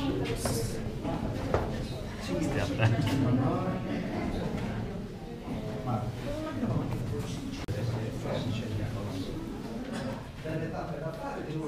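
A crowd of adults chatters and murmurs in a stone cave that echoes.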